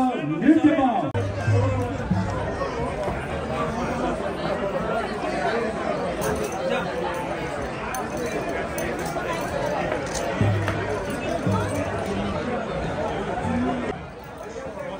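Several men and women chatter and murmur nearby.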